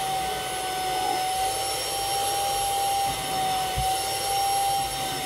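A vacuum cleaner hums and whines steadily up close.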